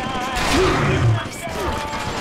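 A heavy weapon strikes with a loud thump.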